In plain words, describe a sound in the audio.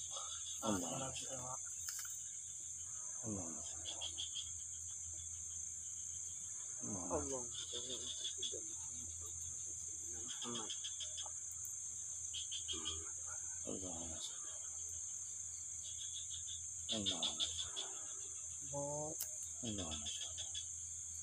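A boy talks quietly close by, in short phrases.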